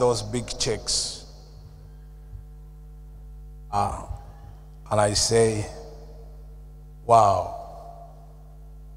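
An elderly man speaks into a microphone in short, emphatic bursts with pauses between them.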